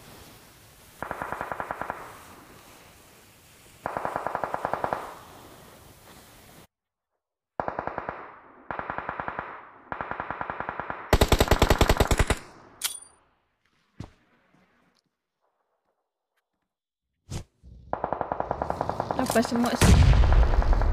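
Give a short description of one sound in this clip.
Rapid bursts of gunfire rattle from a game, loud and close.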